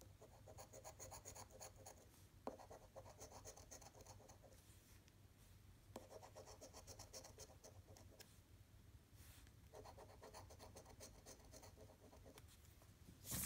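A coin scratches rapidly across a scratch card, with short pauses between bursts.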